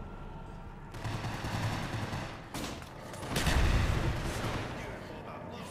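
A pistol fires sharp shots with a short echo.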